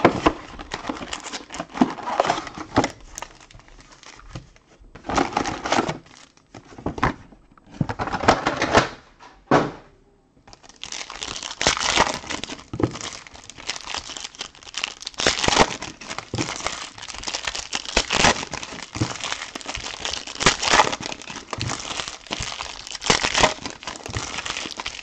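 Plastic card packs crinkle and rustle as hands tear them open.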